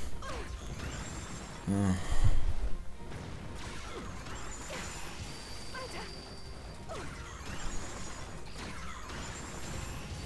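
Blades swing and strike in quick hits.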